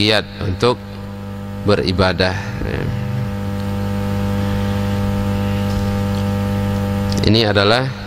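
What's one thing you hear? A man recites in a slow, chanting voice into a microphone.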